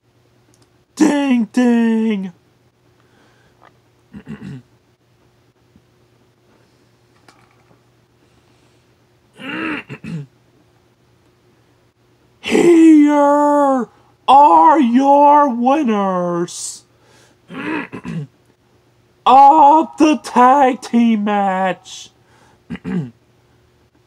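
A young man speaks close by with animation, in short bursts.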